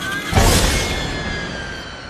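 An engine revs with a loud roar.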